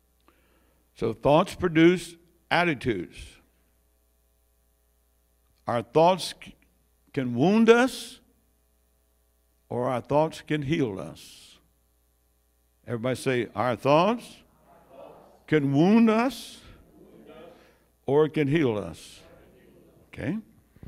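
An elderly man preaches with animation through a microphone, pausing between phrases.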